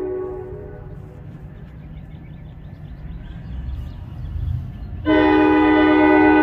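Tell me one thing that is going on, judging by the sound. A train engine rumbles low as it draws closer.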